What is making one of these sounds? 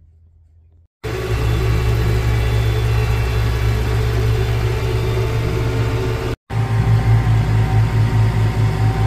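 A truck engine rumbles loudly and steadily.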